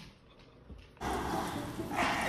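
Small dogs growl while tugging on a toy.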